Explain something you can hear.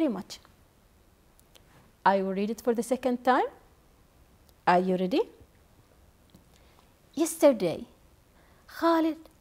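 A young woman reads aloud calmly into a microphone, in short phrases with pauses.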